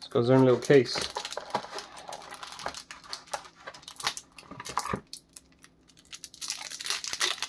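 Plastic packaging crinkles and rustles under hands.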